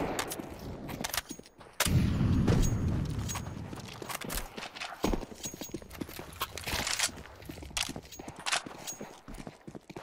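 Rifle shots crack in short, sharp bursts.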